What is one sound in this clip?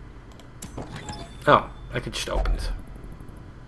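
A heavy wooden chest creaks open with a jingle of coins.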